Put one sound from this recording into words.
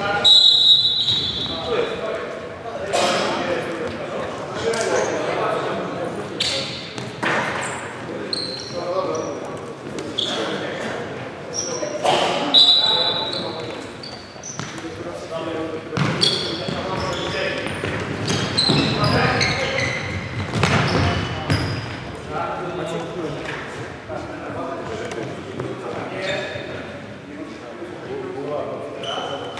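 A futsal ball is kicked and thumps in an echoing hall.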